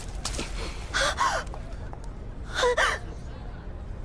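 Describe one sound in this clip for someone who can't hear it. A young woman shouts angrily.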